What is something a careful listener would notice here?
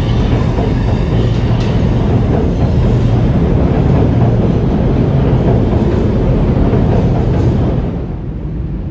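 A subway train rumbles loudly in an echoing tunnel.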